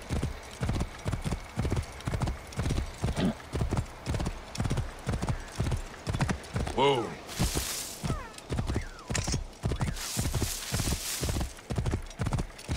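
A horse gallops with steady, heavy hoofbeats.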